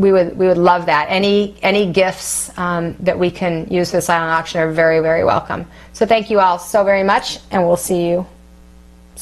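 A woman speaks expressively and close to a microphone.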